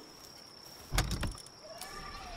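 A chest lid thuds open.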